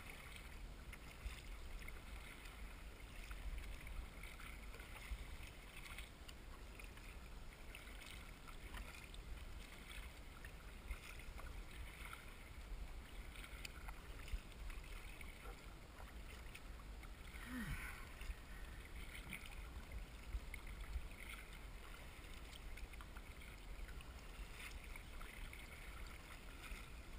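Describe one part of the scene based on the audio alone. Wind buffets a microphone outdoors on open water.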